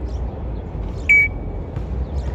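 A parrot squawks once, short and shrill.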